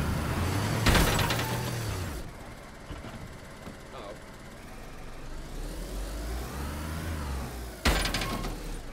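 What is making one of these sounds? A car thumps hard as it lands after a jump.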